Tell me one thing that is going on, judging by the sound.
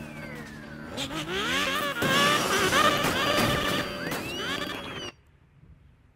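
Police sirens wail close by.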